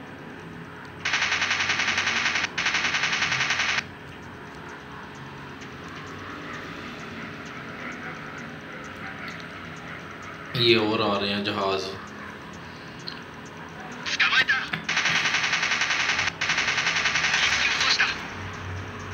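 Machine guns fire in long rapid bursts.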